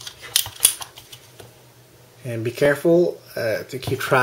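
Metal parts click and tap as they are handled.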